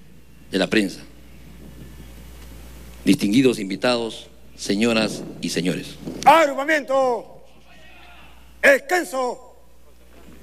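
A man speaks loudly through a microphone and loudspeakers outdoors, in short bursts with pauses.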